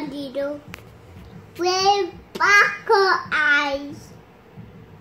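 A toddler speaks and babbles in a high voice close by.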